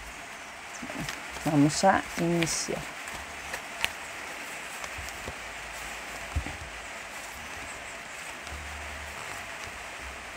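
Playing cards are shuffled and laid down softly.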